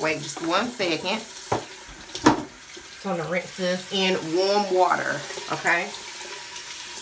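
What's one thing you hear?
A woman speaks calmly, close to a microphone.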